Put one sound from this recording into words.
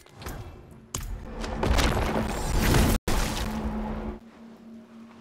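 Magic blasts crackle and boom loudly in a fight.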